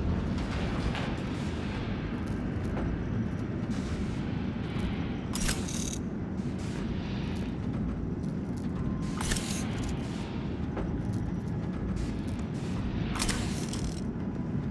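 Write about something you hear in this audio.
Steam hisses in short bursts from a vent.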